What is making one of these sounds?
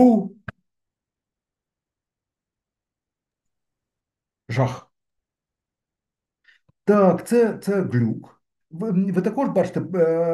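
A man lectures calmly into a microphone, with pauses.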